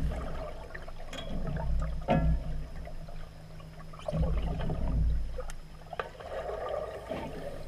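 Underwater, a muffled low rumbling of water fills the recording.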